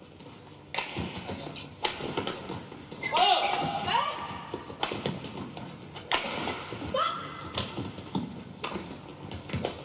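Badminton rackets strike a shuttlecock in a fast rally, with sharp pops echoing in a large hall.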